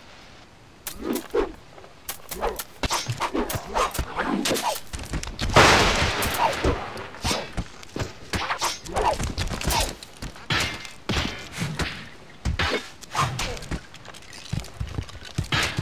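Swords and blades clash in a melee fight.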